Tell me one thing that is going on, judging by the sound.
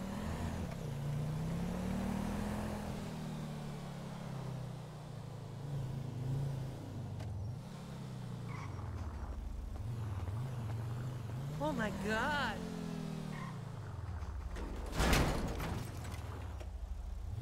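A car engine hums and revs up and down as it drives.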